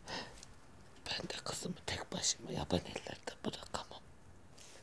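A man whispers in a choked voice.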